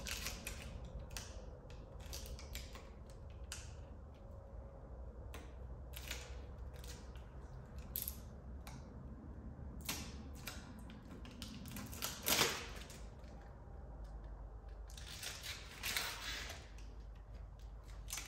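Plastic parts click and scrape under a man's hands, close by.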